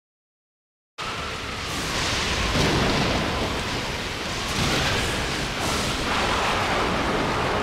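Thunder rumbles and cracks loudly.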